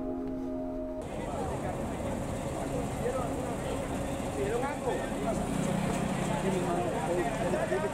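A crowd of adults chatters outdoors close by.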